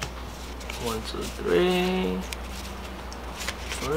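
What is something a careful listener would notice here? Playing cards rustle as they are shuffled.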